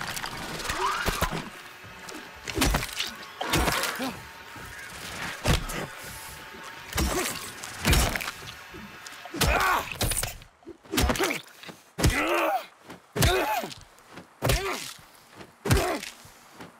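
A metal pipe strikes a creature with heavy thuds.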